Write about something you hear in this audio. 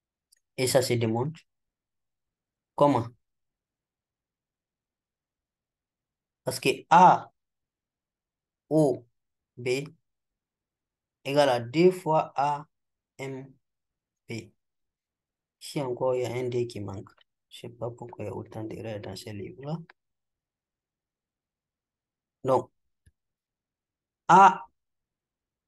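A young man explains calmly into a close microphone, in short phrases with pauses.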